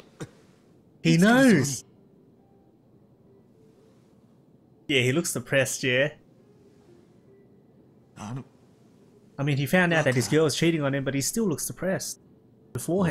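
A man speaks with surprise, close by.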